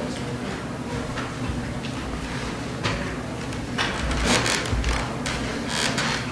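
Footsteps shuffle as men move about and take their places.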